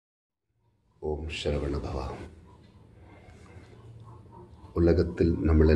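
A man speaks close to a microphone in a low, calm voice.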